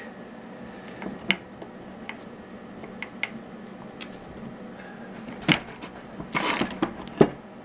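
Metal clicks and knocks in a bench vise.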